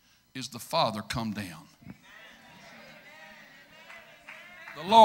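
A middle-aged man speaks forcefully through a microphone.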